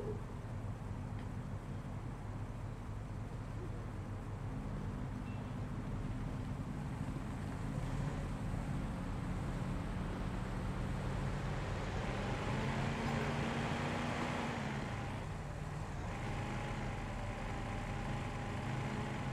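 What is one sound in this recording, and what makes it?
A car engine hums steadily and revs as the car drives along a street.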